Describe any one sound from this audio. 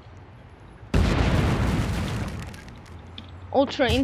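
A loud whooshing blast bursts out and fades.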